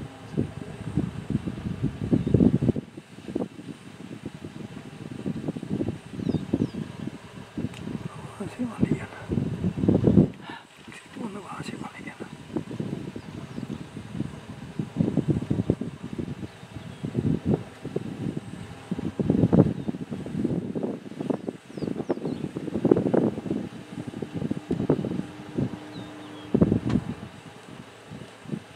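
Wind buffets outdoors in uneven gusts.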